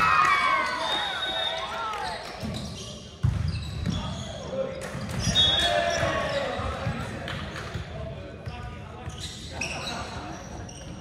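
Players' sneakers squeak sharply on a hardwood court.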